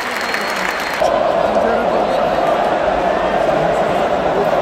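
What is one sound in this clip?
A huge crowd roars and cheers steadily across an open stadium.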